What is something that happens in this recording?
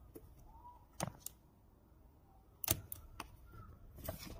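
A small rubber flap snaps open and shut.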